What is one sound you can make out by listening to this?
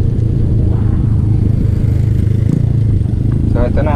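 A passing motorbike buzzes by.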